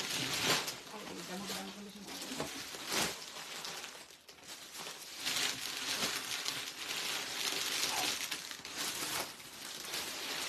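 Bundles of cloth rustle as they are carried.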